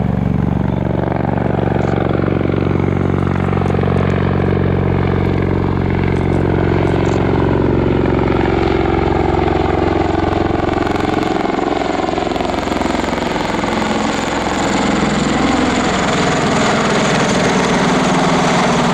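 A tiltrotor aircraft's rotors thump and drone loudly overhead, their pitch slowly shifting as it passes close by.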